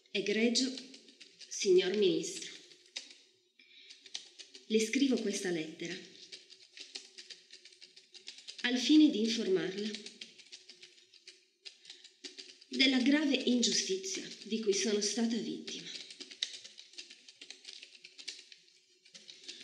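Fingers tap quickly on a laptop keyboard.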